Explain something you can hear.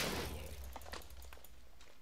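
A game zombie groans nearby.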